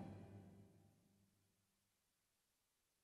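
A final keyboard chord rings out and fades away.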